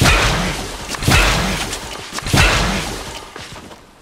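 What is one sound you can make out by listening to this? A crackling energy blast bursts loudly and fades.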